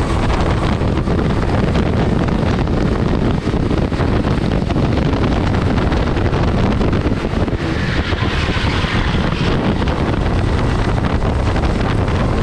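A kart engine buzzes loudly close by at high revs.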